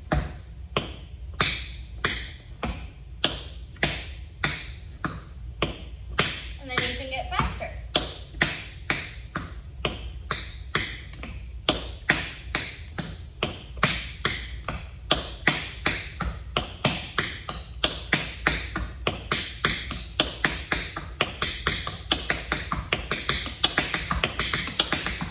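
Tap shoes click and strike rhythmically on a wooden floor, growing quicker over time.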